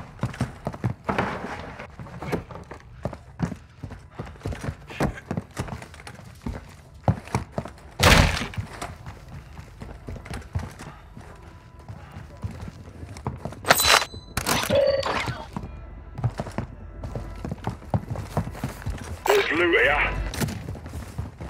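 Footsteps thud steadily on a soft floor.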